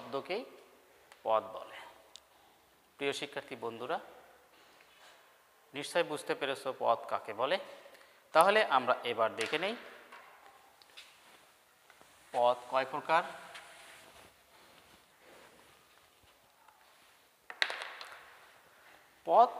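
A man speaks through a clip-on microphone, explaining calmly in short bursts.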